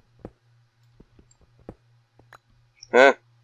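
A pickaxe chips at stone with short dull knocks.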